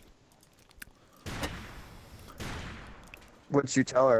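A rifle fires a couple of shots.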